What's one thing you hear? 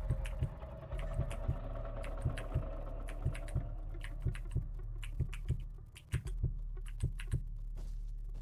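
A heartbeat thumps in a steady rhythm.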